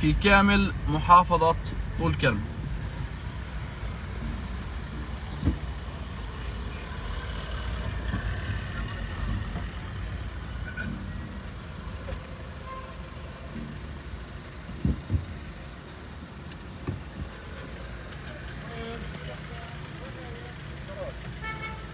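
A car engine hums steadily from inside the car as it drives slowly.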